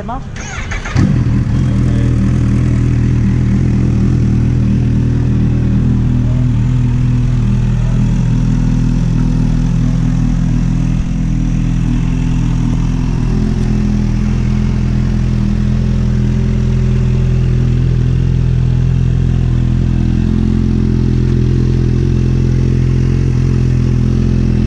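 A motorcycle engine starts up and idles with a deep, steady rumble close by.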